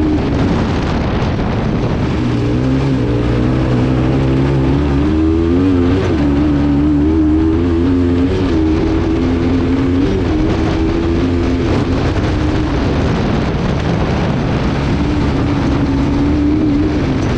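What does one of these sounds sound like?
A racing buggy engine roars loudly up close, its pitch rising and falling with the throttle.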